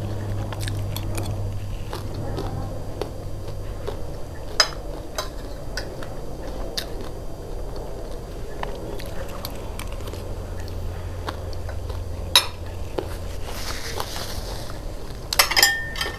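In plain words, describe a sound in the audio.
A young woman chews food close to the microphone.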